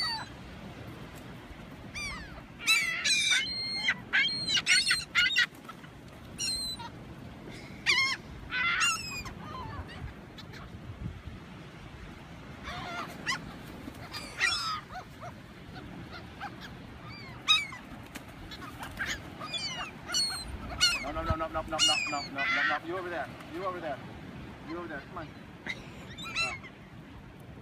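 Seagulls cry and squawk overhead.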